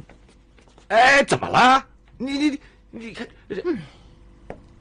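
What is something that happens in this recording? A young man speaks with hesitant surprise.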